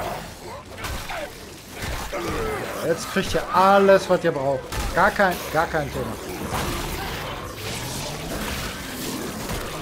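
Flesh squelches and tears under heavy blows.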